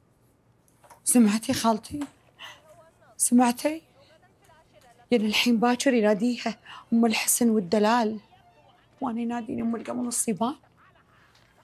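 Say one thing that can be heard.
A woman speaks pleadingly and with animation, close by.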